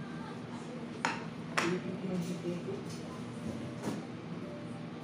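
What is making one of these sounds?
A plate clinks and knocks on a hard counter.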